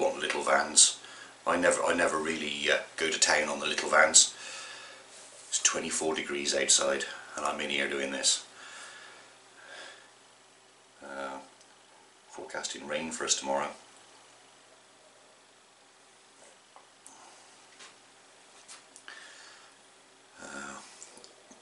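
A middle-aged man talks calmly and close to a microphone, with pauses.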